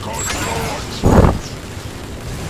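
A loud explosion booms with a deep rumble.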